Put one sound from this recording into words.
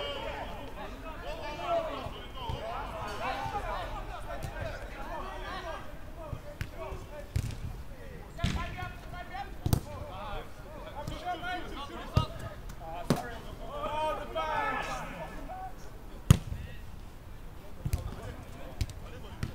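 Young men shout and call to each other across an open pitch outdoors.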